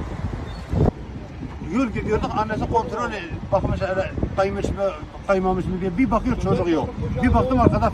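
A middle-aged man speaks loudly and with agitation, close by.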